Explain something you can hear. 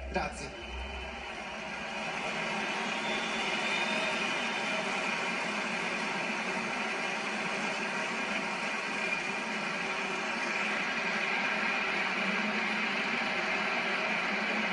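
A large stadium crowd applauds and cheers.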